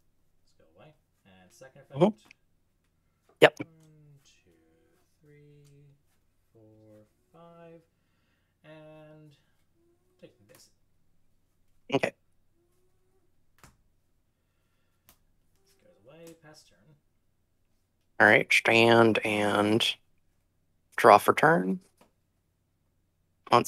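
Playing cards are laid down on a table with soft taps.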